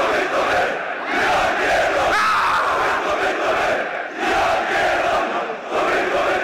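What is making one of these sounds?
A large crowd of fans chants loudly in unison in an open stadium.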